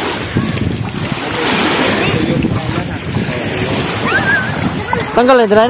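Small waves lap at the shore.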